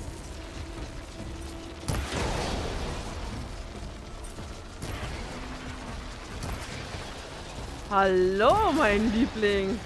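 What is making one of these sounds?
Energy blasts burst with loud crackling bangs.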